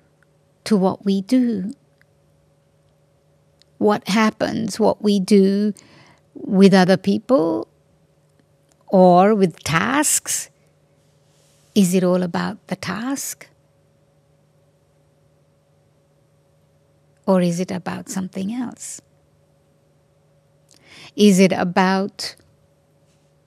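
An elderly woman speaks calmly into a microphone, in short phrases with pauses.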